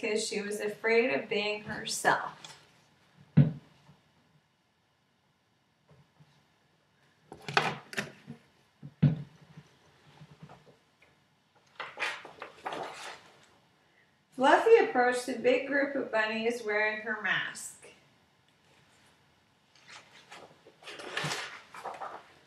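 A young woman reads out a story with animation, close to the microphone.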